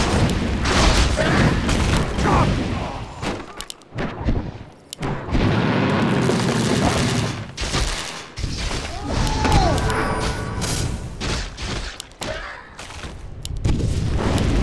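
Game spell effects and attacks crackle and boom in quick bursts.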